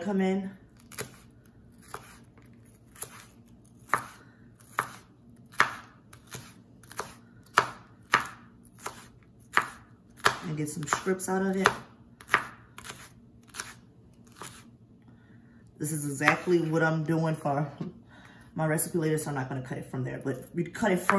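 A knife chops through crisp vegetables on a wooden board with steady, quick taps.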